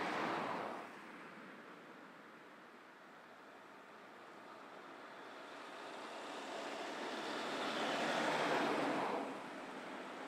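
An ambulance drives past on a road.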